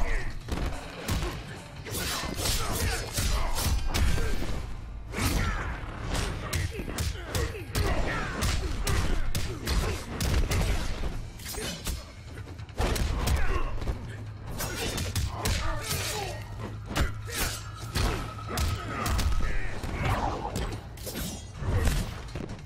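Electric blasts crackle and zap.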